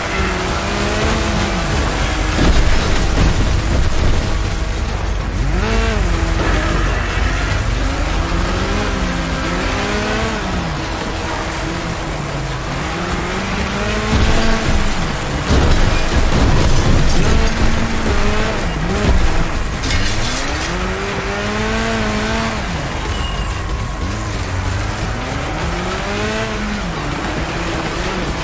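A small engine revs up and down, whining loudly.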